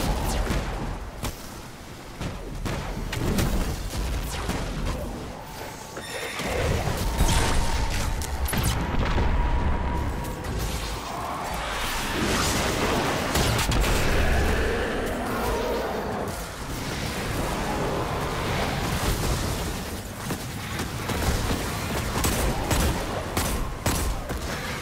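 Heavy energy weapons fire in rapid bursts.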